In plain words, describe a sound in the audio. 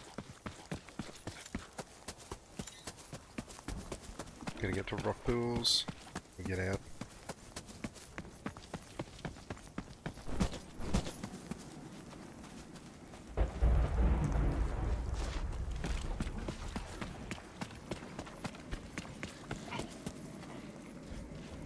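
Footsteps swish through grass at a steady walking pace.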